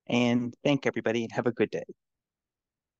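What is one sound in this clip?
A middle-aged man speaks briefly and calmly through a headset microphone on an online call.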